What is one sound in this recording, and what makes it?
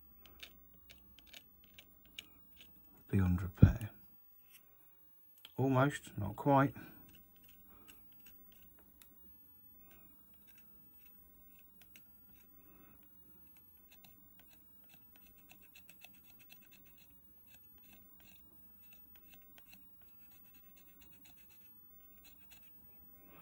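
Metal tweezers tap and scrape faintly against a circuit board.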